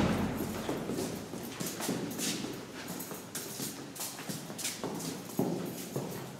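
Footsteps tap on stairs.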